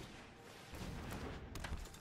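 A magical fiery burst whooshes and crackles.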